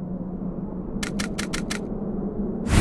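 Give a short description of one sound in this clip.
Menu clicks tick in quick succession.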